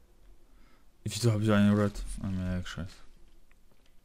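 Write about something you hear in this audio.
A young man talks close into a headset microphone.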